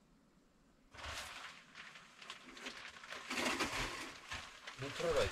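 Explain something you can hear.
A curtain rustles as it is pulled aside.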